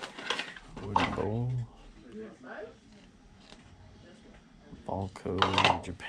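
Wooden bowls clack together.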